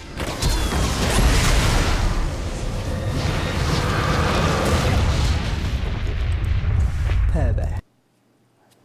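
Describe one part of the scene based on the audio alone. Loud game battle effects crash and boom, ending in a big explosion.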